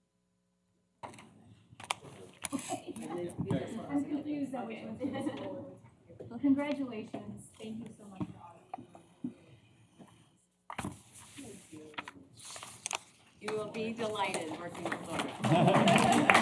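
Men and women chatter and murmur in a crowded room.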